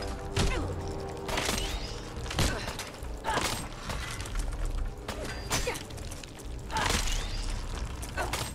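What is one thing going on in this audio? A blade strikes a creature's hard shell with heavy thuds.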